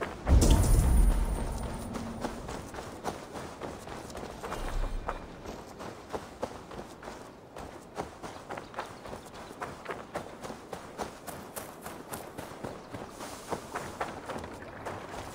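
Footsteps tread steadily on dirt and grass.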